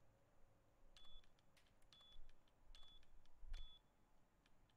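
Keypad buttons beep one after another.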